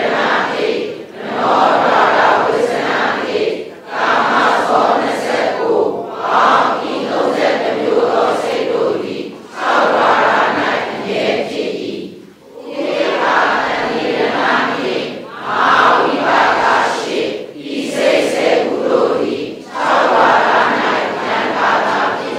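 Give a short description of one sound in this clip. An elderly man reads aloud steadily into a microphone, with short pauses.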